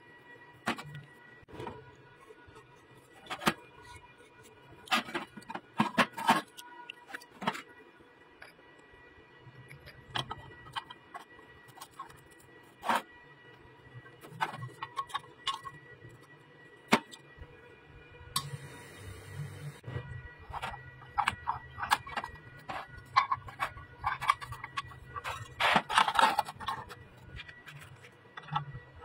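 Metal pieces clink and knock together.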